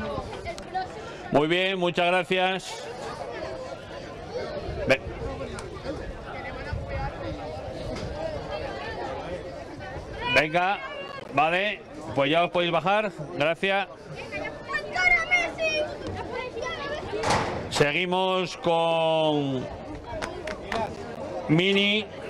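A crowd of children chatters nearby outdoors.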